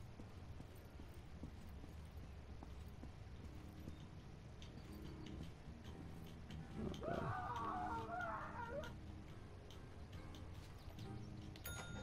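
Footsteps walk softly across a floor.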